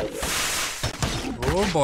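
Magic energy blasts whoosh and crackle.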